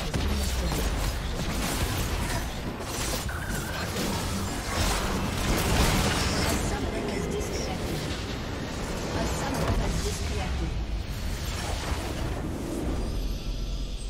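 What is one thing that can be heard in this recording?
Magic blasts and clashing weapons crackle and boom in a hectic game battle.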